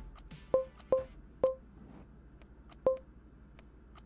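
Short electronic clicks sound as menu buttons are pressed.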